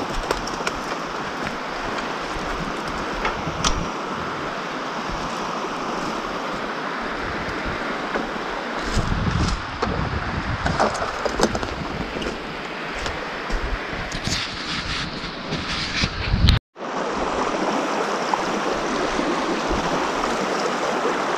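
A shallow river rushes steadily over stones.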